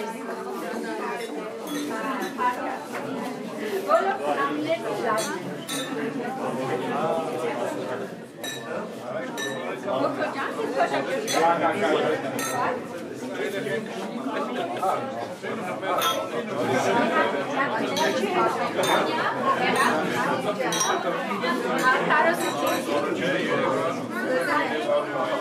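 Glasses clink together in a toast.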